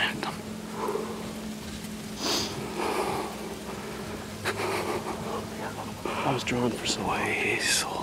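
A man whispers close by.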